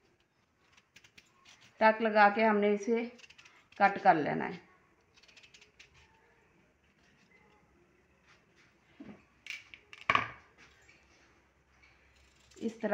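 A peeler scrapes the skin off a potato with soft, quick strokes.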